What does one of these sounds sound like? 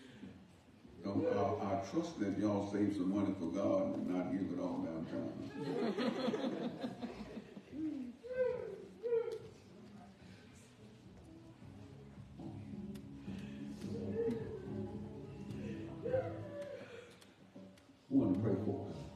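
A man preaches with animation into a microphone in an echoing room.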